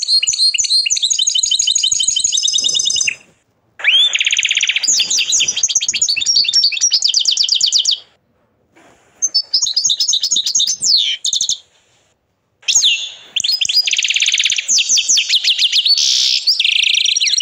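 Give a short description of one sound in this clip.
A canary sings loud, rapid trills and chirps in bursts.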